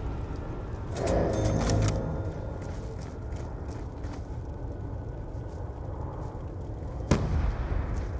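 Gunshots fire from a game, sharp and loud.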